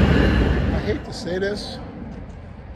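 A man speaks close to the microphone, outdoors.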